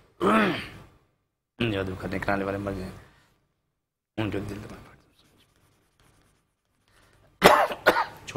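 An elderly man speaks slowly into a microphone, in short phrases with pauses.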